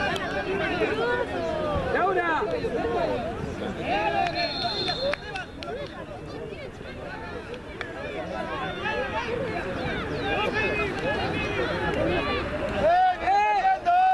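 Children shout and call out excitedly across an open field outdoors.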